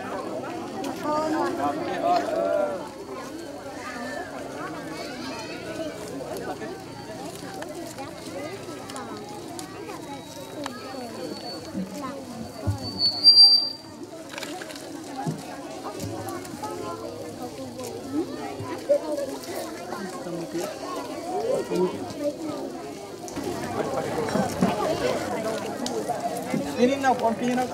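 People talk and murmur nearby outdoors.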